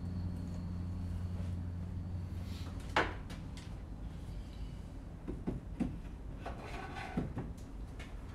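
Tools knock and clatter against a wooden shelf.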